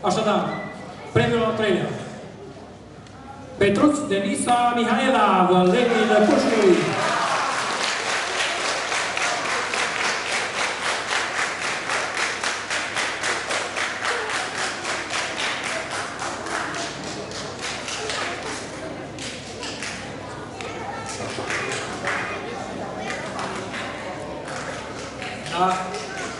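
A man speaks into a microphone over a loudspeaker, reading out in a large echoing hall.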